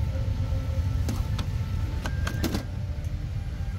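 A plastic tray table clicks and clatters as it folds down.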